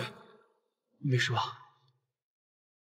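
A young man answers quietly, close by.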